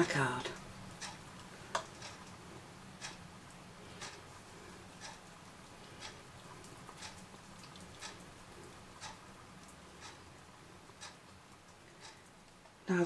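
A paintbrush taps lightly, again and again.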